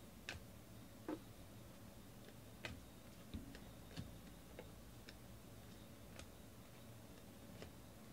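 Trading cards shuffle and flick against each other in a hand.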